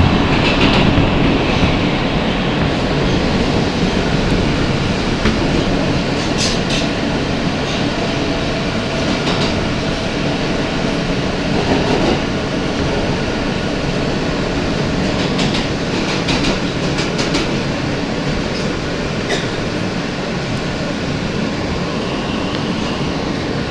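A vehicle rumbles steadily as it moves.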